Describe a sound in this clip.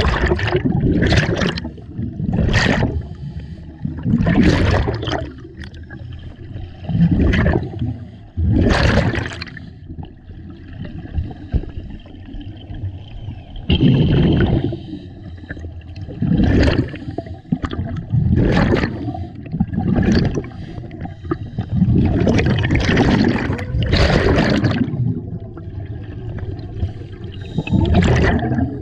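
A diver's breath rushes through a regulator underwater.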